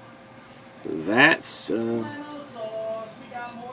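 Trading cards rustle softly as they are shuffled by hand.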